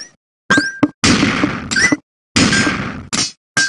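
A game sound effect bursts out noisily as lines clear.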